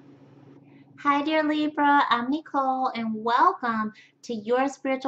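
A woman speaks with animation, close to a microphone.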